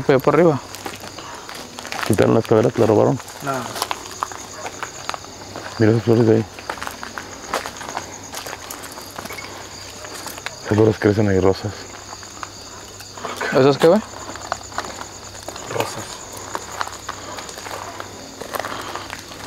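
Footsteps crunch on dirt and leaves.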